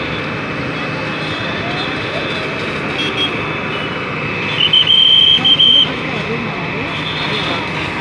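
A crowd of men and women murmurs and talks nearby.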